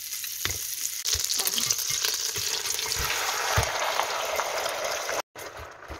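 Raw chicken pieces thud into a pot.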